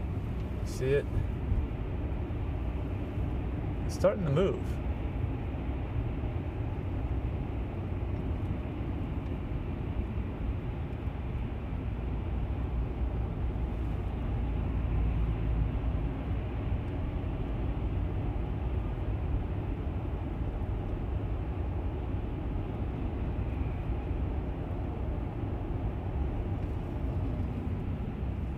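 A car's engine and tyres rumble steadily, heard from inside the car.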